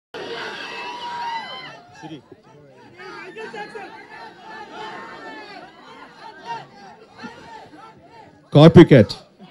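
A crowd of men talks and shouts outdoors.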